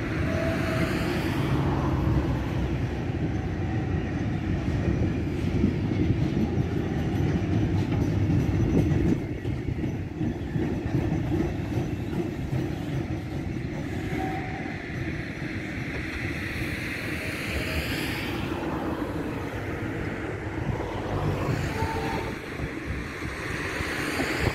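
A long freight train rumbles and clatters along the tracks nearby.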